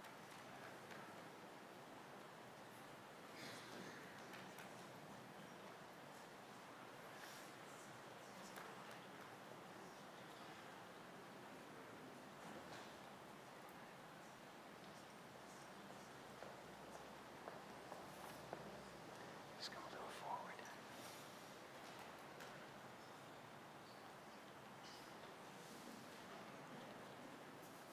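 Footsteps shuffle softly across a hard floor.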